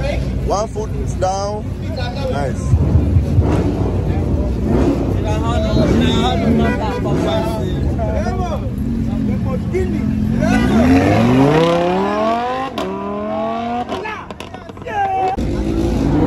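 Young men talk and shout excitedly nearby.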